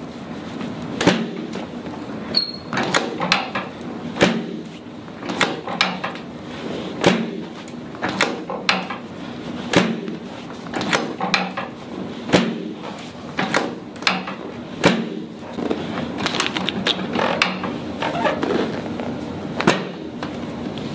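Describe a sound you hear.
Hands thump and slap firmly on a person's back again and again.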